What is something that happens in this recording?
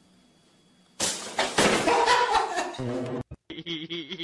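A chair clatters over.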